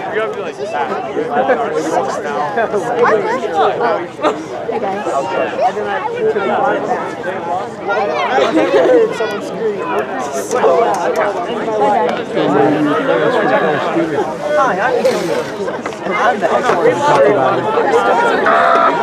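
A crowd of young spectators chatters and shouts close by, outdoors.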